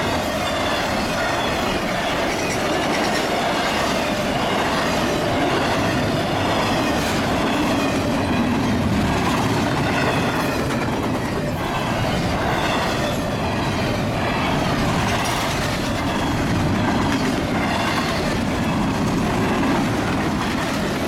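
Wheels clack rhythmically over rail joints.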